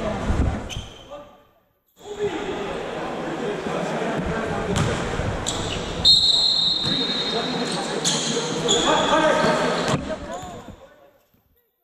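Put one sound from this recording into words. Young players call out in a large echoing hall.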